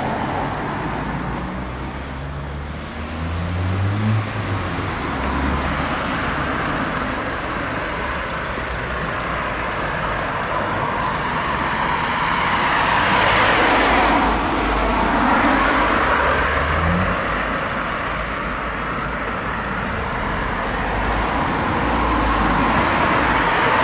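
Traffic hums steadily on a street outdoors.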